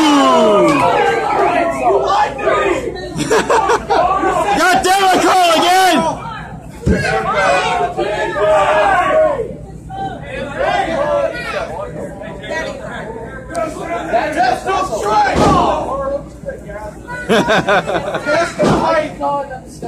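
A crowd of men and women shouts and cheers loudly in an echoing hall.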